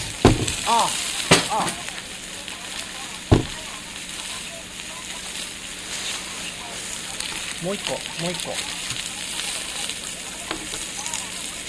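Food sizzles in a pan on a portable stove.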